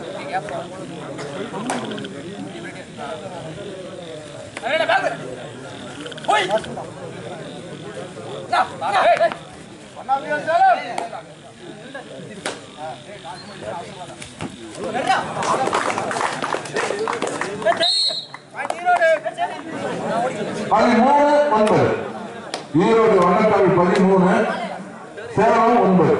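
A large outdoor crowd murmurs and shouts.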